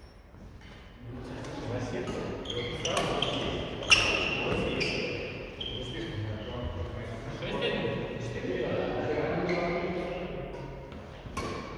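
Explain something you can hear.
Adult men and women talk and call out across a large echoing hall.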